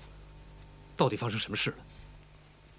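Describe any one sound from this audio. A young man speaks sharply, close by.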